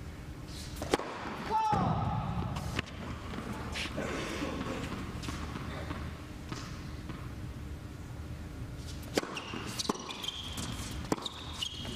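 A tennis ball is struck hard with a racket, back and forth.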